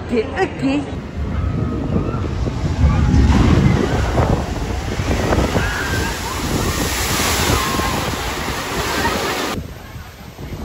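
A boat plunges down a chute and crashes into water with a roaring splash.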